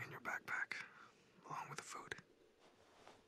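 A young man speaks quietly and calmly, close by.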